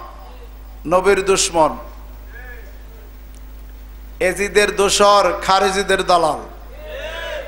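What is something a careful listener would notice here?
A middle-aged man preaches loudly and with fervour into a microphone, heard through loudspeakers.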